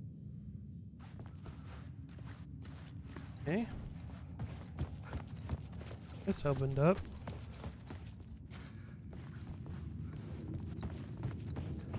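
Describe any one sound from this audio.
Footsteps crunch slowly on gravel in a tunnel.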